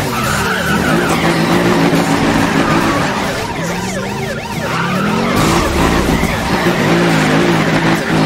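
Tyres screech as a car drifts around bends.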